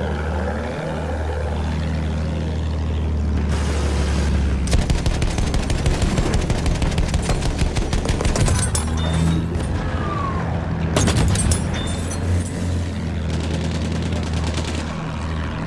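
A propeller plane engine drones steadily throughout.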